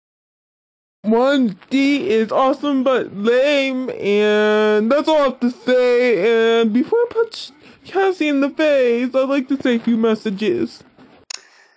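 A cartoon dog talks quickly in a high, animated voice.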